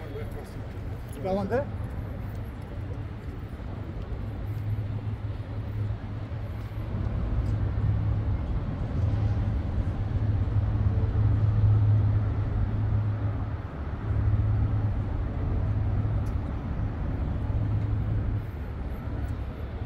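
Traffic hums in the distance.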